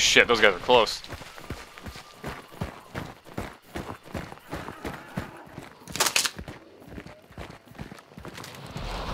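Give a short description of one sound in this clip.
Footsteps crunch through dry undergrowth at a steady pace.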